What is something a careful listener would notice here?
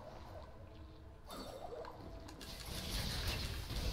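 A magical whooshing sound plays as a small glowing creature leaps and attacks.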